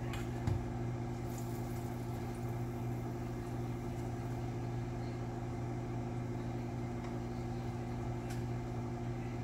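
Tongs click against a pan.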